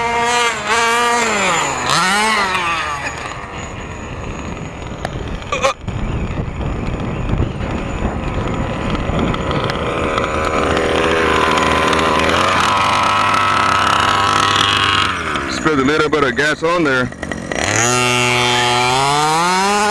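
A two-stroke engine on a 1/5-scale RC buggy revs up and down.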